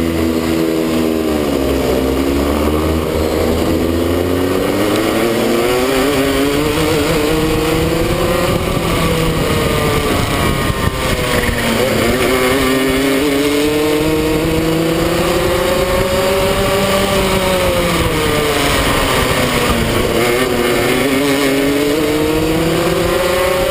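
A kart engine close by buzzes loudly, rising and falling in pitch as the kart speeds up and slows down.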